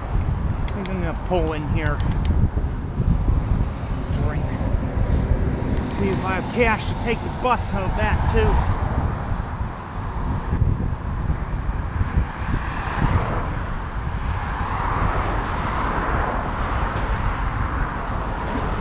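Wind buffets the microphone loudly.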